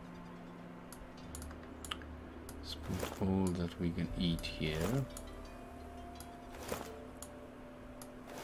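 Soft game interface clicks sound as items are moved.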